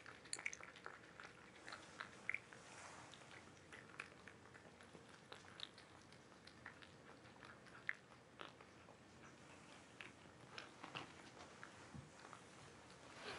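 Cats crunch and lap food from bowls close by.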